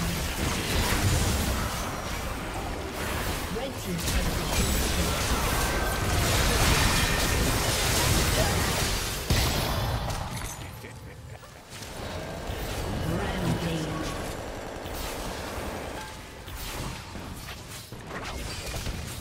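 Magic spells blast, whoosh and crackle in a busy fantasy battle.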